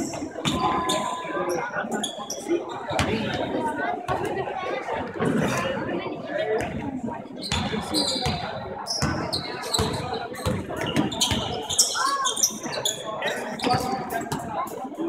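A crowd chatters and calls out in a large echoing hall.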